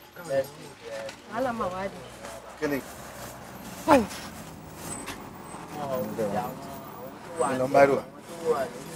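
A man speaks angrily and close by.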